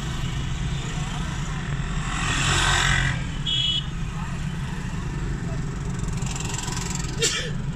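Motorcycle and auto-rickshaw engines putter and drone through busy street traffic.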